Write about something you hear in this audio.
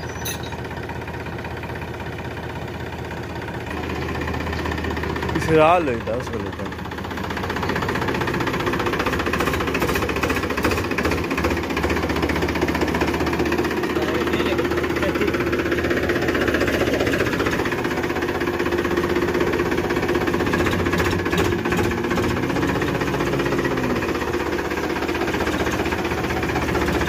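A tractor engine runs with a steady diesel chug close by.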